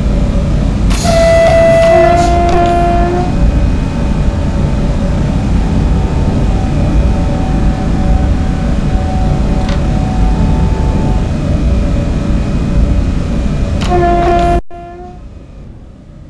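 A train horn blows.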